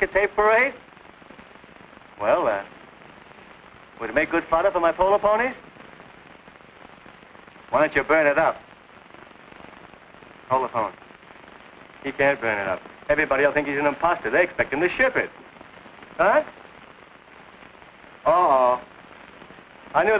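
A middle-aged man talks cheerfully in short bursts.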